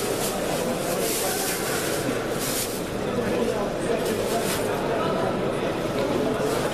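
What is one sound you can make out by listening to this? A crowd of men and women chatters in a large, echoing hall.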